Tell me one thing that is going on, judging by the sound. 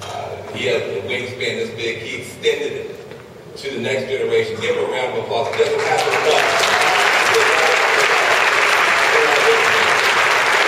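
A man speaks forcefully into a microphone, his voice echoing through a large hall.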